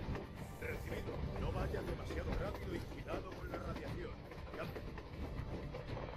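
A rail cart rumbles steadily along the tracks.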